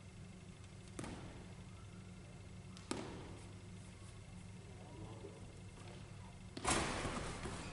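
A basketball thuds on a hard floor with an echo.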